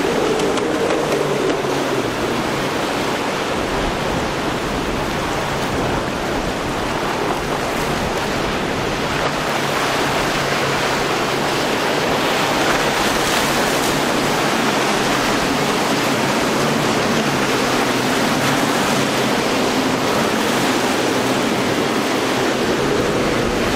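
Water rushes and splashes against a speeding boat's hull.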